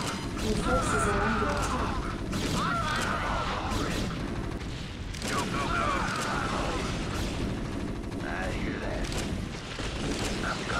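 A young man talks excitedly into a close microphone.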